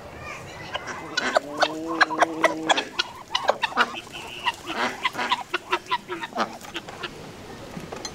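Chickens cluck and peck.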